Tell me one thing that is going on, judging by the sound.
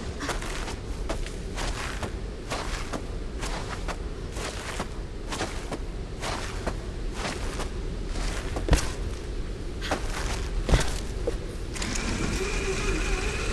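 A rope rattles and hisses as something slides fast along it.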